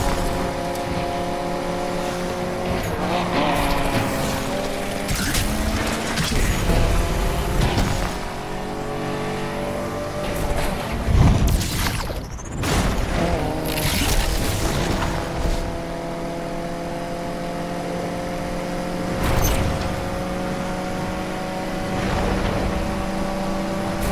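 A sports car engine roars at high speed, shifting gears.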